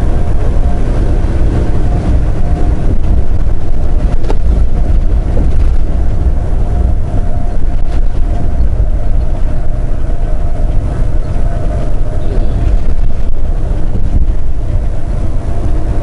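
A truck's engine rumbles steadily from inside the cab.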